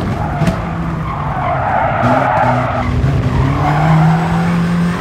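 Tyres screech briefly through a corner.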